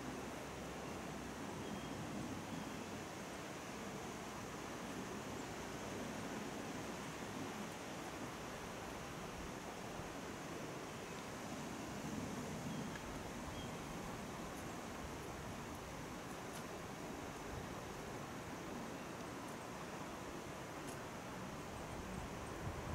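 Wind blows steadily outdoors through the treetops.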